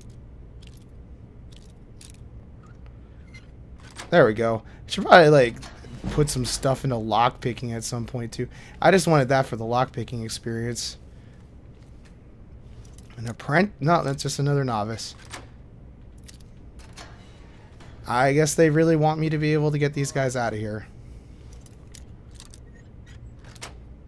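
A lock pick scrapes and clicks inside a metal lock.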